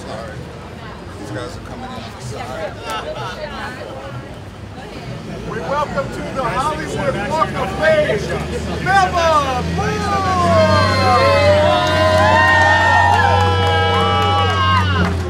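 A crowd of men and women chatters and cheers nearby outdoors.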